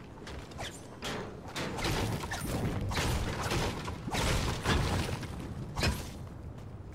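A pickaxe strikes wood and stone with sharp knocks.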